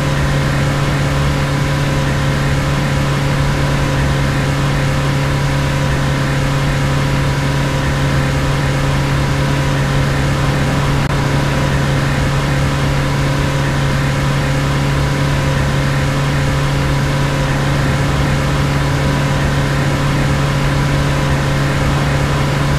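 Tyres roll on a road with a steady rushing noise.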